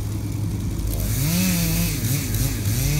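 A chainsaw revs in the distance.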